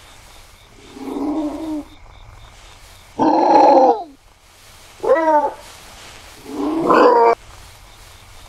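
A wolf yelps and snarls.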